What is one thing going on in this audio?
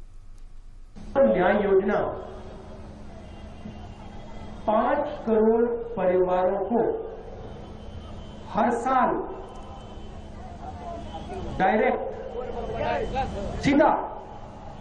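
A man speaks forcefully into a microphone over a loudspeaker outdoors.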